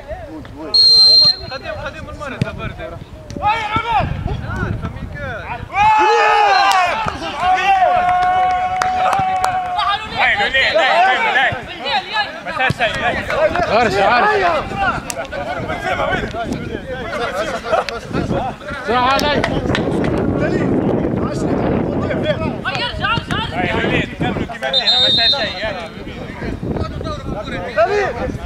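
Men shout and call out loudly across an open pitch outdoors.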